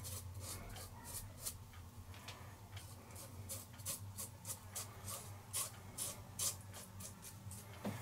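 A razor scrapes across stubble on skin.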